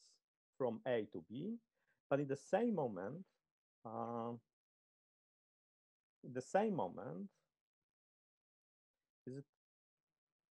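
A man speaks calmly through a microphone on an online call, with pauses.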